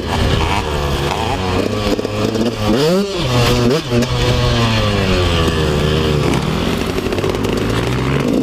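A dirt bike engine revs loudly up close, rising and falling in pitch.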